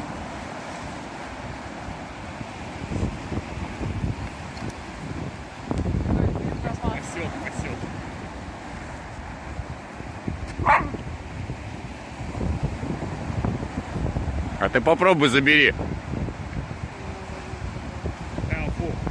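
Waves wash against the shore nearby.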